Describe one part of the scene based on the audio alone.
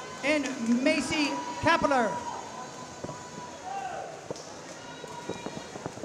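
Swimmers splash through water in an echoing indoor pool.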